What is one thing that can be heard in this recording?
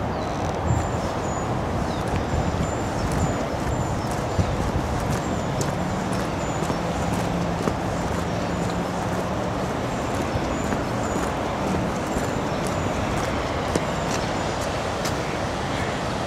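Footsteps crunch and scuff on a wet path.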